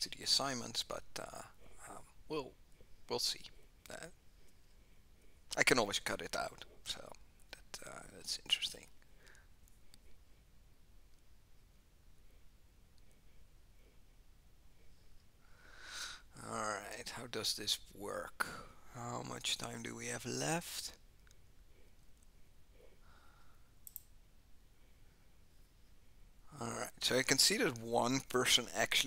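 A man speaks calmly into a headset microphone, with pauses.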